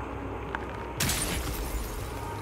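A crystal cracks and shatters.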